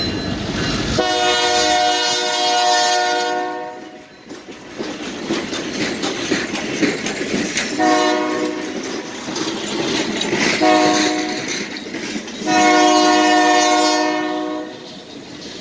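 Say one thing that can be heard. A train horn blows several long loud blasts.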